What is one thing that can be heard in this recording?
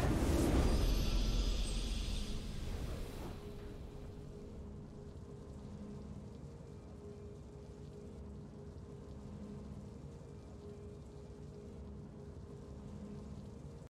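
A triumphant game fanfare plays softly.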